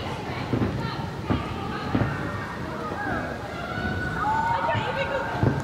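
Girls shout and call out to each other in a large echoing hall.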